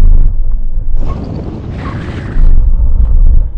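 Tyres screech on wet tarmac.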